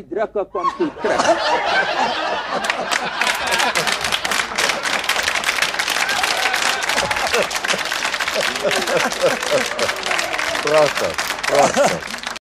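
Several people laugh loudly together.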